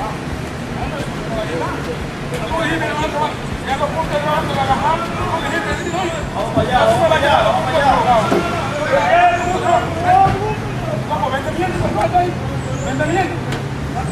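Several men talk and shout excitedly nearby, outdoors.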